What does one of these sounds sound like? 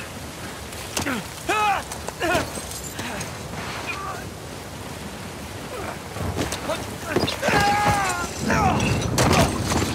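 A man shouts and cries out in strain.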